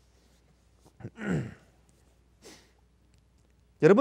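An elderly man rubs his hands together.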